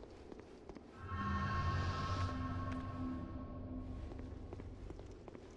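A magic spell rings out with a shimmering chime.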